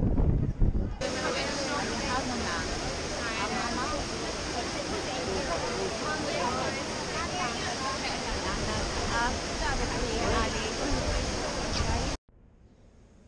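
A crowd of people chatters nearby.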